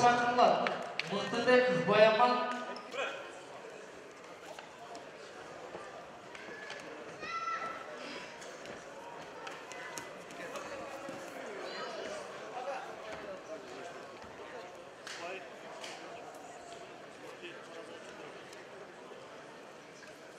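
A crowd murmurs and calls out in a large hall.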